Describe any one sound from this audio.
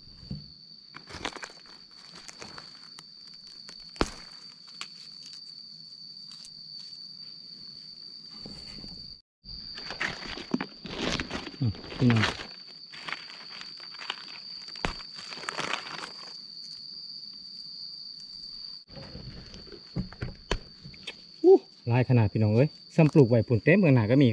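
Dry leaves rustle and crunch under a gloved hand.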